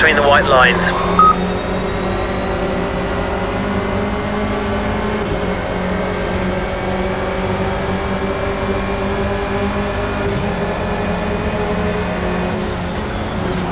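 A race car engine roars steadily at high revs, rising as the car speeds up.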